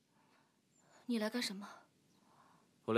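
A young woman speaks quietly and curtly.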